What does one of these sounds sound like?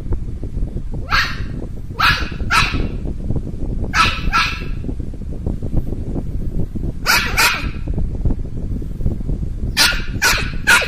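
A small dog yips and howls in short high cries close by.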